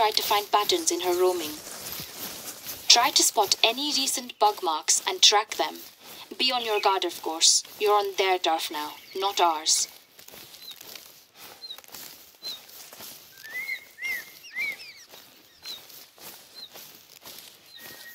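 Footsteps rustle through leafy undergrowth.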